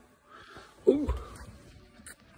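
A young boy mumbles sleepily close by.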